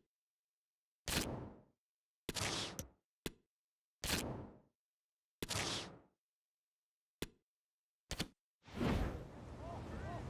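Short whooshing menu sounds play in quick bursts.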